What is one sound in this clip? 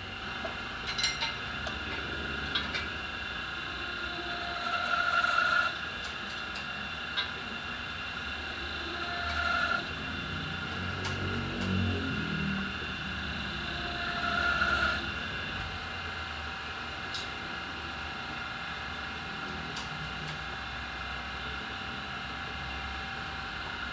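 Metal parts clink and knock as a tool is adjusted on a wheel.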